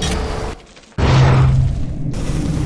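A burst of flame whooshes and roars.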